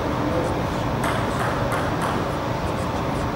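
A table tennis ball bounces with light clicks on a table.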